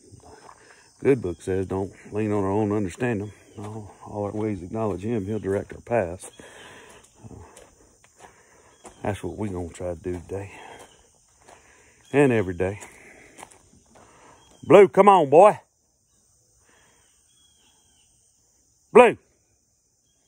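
A middle-aged man talks with animation close to a phone microphone, sometimes raising his voice.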